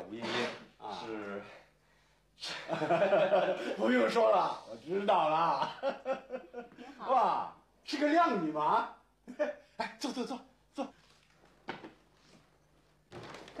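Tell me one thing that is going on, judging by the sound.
A middle-aged man speaks cheerfully, close by.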